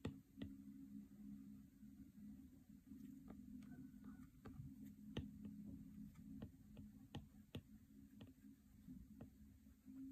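A stylus taps and scrapes lightly on a tablet's glass.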